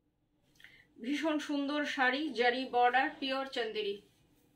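A middle-aged woman speaks close by with animation.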